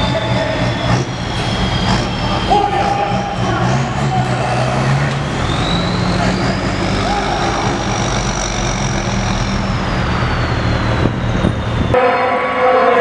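Truck engines idle nearby with a deep, steady rumble.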